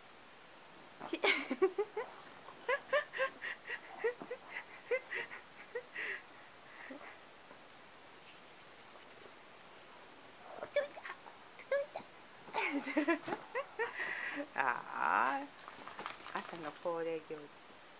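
A dog shuffles about on rustling bedding.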